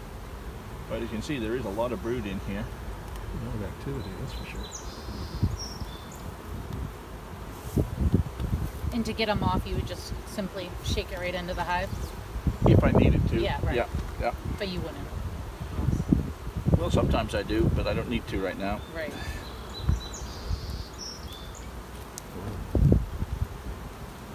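Bees buzz in a low, steady hum.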